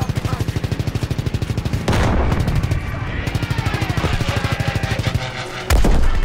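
Aircraft machine guns fire in rapid bursts.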